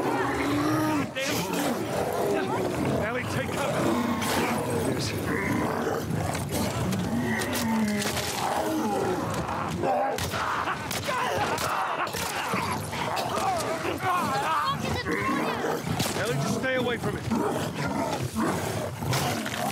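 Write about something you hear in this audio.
Creatures shriek and growl.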